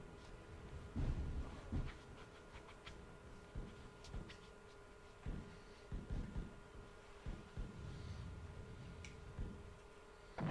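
Footsteps thud heavily on a hard floor.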